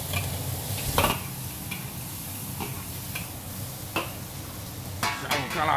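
Meat sizzles in hot oil in a pan.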